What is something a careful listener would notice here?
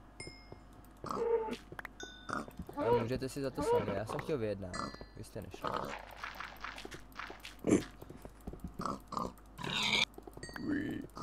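A pig grunts.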